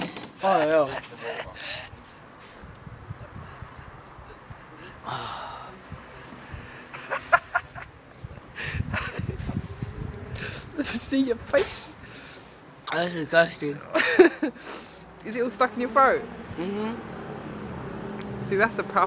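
A young man talks and exclaims close by, outdoors.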